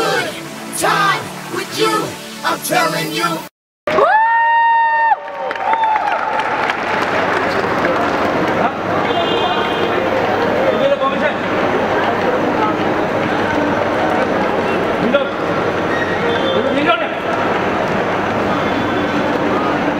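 A crowd of people cheers and shouts.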